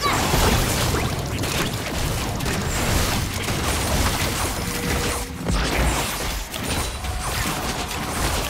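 Game characters clash with hits and impacts.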